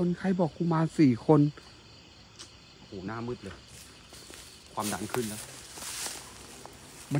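Footsteps crunch on dry straw and leaves.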